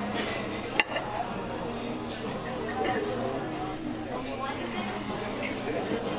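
A knife scrapes across a plate.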